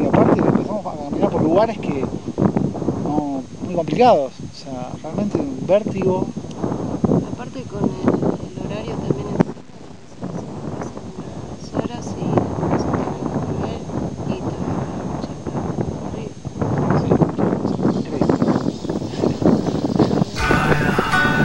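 A man talks close to the microphone outdoors.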